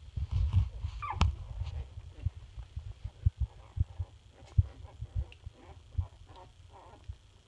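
Newborn puppies squeak and whimper softly, close by.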